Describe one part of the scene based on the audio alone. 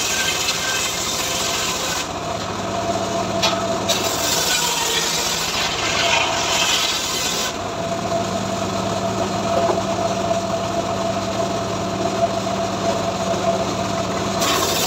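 A circular saw whines harshly as it rips through a log.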